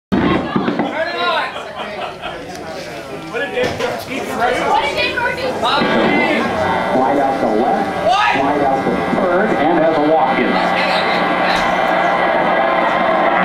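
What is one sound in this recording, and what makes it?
An electric guitar plays loudly in a large echoing hall.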